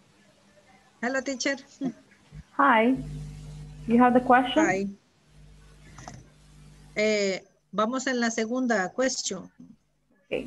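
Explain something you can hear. A middle-aged woman speaks with animation over an online call.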